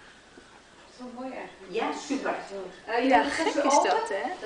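Newborn puppies squeal and whimper up close.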